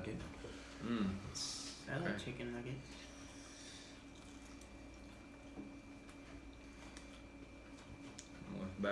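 Teenage boys chew food with crunching sounds.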